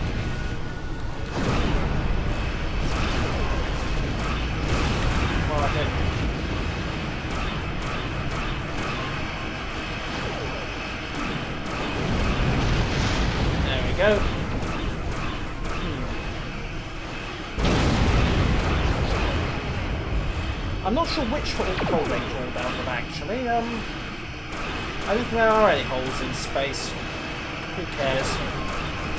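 Laser weapons fire with rumbling blasts.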